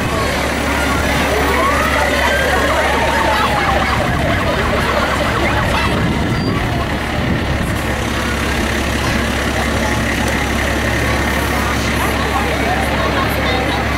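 A fire engine's engine rumbles as it rolls past close by.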